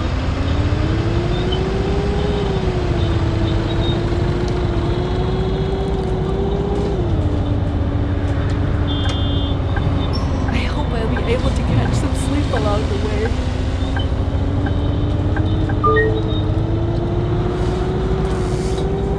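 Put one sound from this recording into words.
A bus engine hums steadily and rises and falls in pitch as the bus drives.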